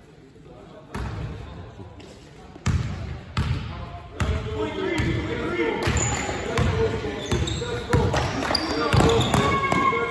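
A basketball bounces on a hardwood court in a large echoing hall.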